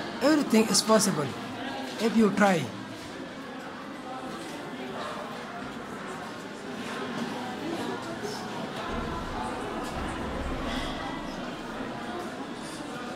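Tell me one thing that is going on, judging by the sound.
A marker squeaks and scratches softly across a whiteboard.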